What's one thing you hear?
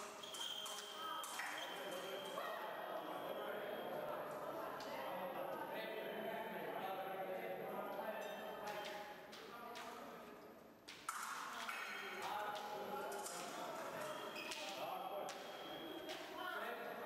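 Fencing blades clash and click in quick bursts.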